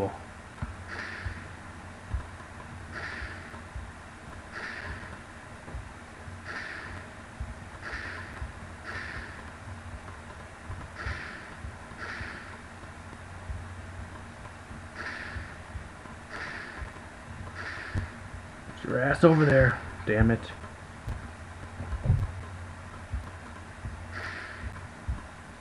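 Short soft bursts of a game's blast effects pop again and again.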